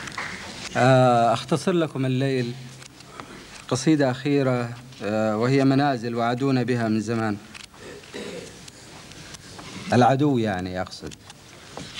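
A man recites in a drawn-out, sing-song voice into a microphone, heard over a loudspeaker in a hall.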